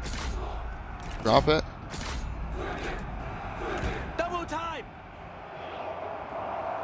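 Weapons clash in a distant battle.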